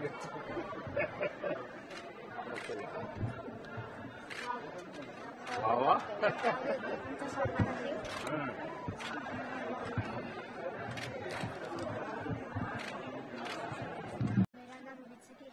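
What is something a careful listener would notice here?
Children chatter excitedly in a crowd.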